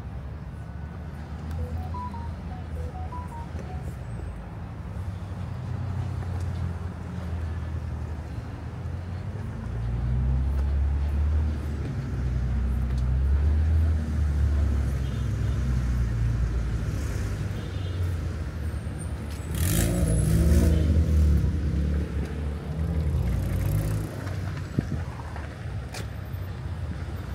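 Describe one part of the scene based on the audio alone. Steady city traffic rumbles nearby outdoors.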